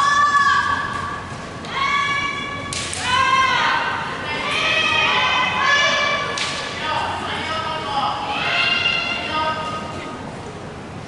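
Young people shout loud, drawn-out calls in a large echoing hall.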